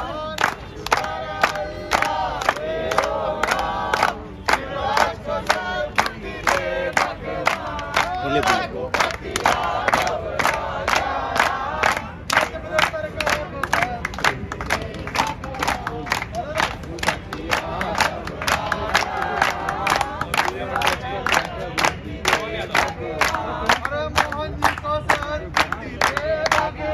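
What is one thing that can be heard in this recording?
A crowd of young men and women chants slogans in unison.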